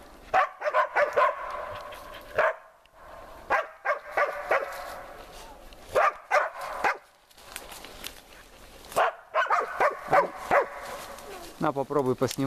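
A dog barks loudly in quick bursts.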